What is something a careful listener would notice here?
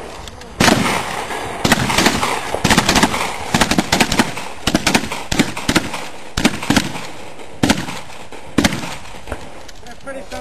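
A shotgun fires loud single shots.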